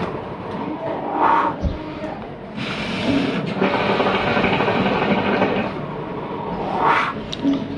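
A man exhales a long breath of smoke with a soft whoosh.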